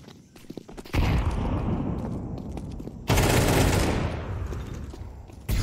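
A smoke grenade bursts with a loud, long hiss.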